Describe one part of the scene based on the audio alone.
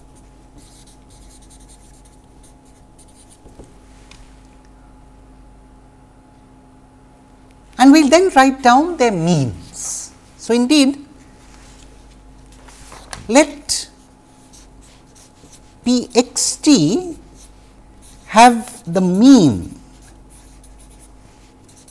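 A felt-tip marker scratches and squeaks across paper.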